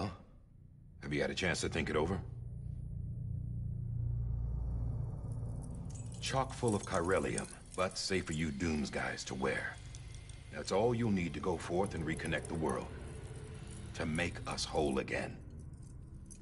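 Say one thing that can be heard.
A man speaks calmly in a deep voice, close by.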